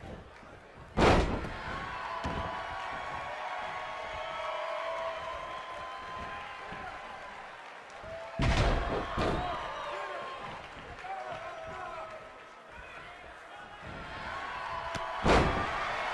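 Bodies slam down hard onto a wrestling mat with loud thuds.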